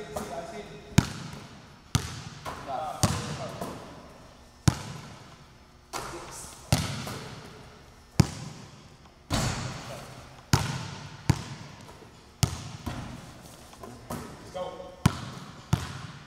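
A basketball bounces sharply on a hard floor in a large echoing hall.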